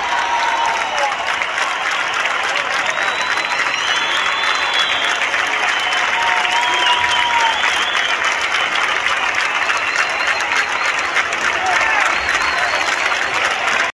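People in a crowd whistle shrilly.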